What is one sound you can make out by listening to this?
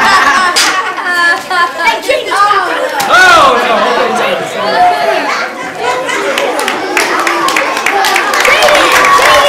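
Children chatter and shout excitedly nearby.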